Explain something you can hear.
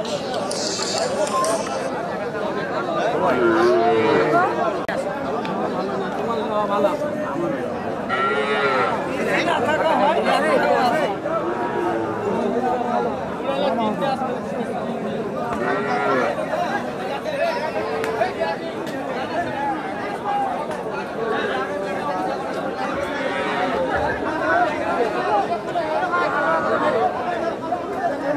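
A crowd of men talks all around, a busy outdoor chatter.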